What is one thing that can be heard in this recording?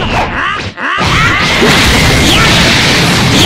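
A huge energy blast explodes with a roaring rumble.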